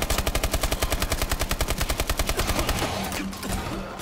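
An automatic rifle fires rapid bursts.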